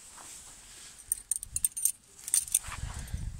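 Metal tent pegs clink together.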